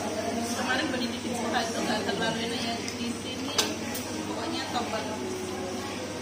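Cutlery clinks on plates.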